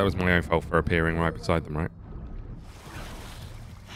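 A swimmer splashes while coming up out of the water.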